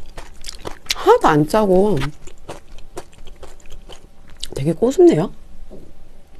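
A young woman speaks close to a microphone with a lively, sing-song voice.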